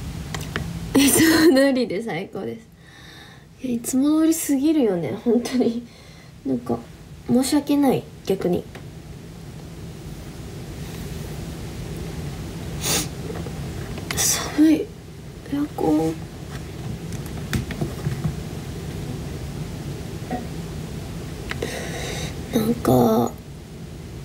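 A young woman talks casually and close by, in short bursts.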